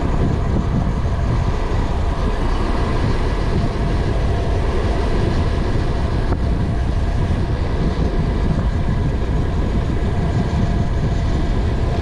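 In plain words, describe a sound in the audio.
Wind rushes past a cyclist riding a road bike.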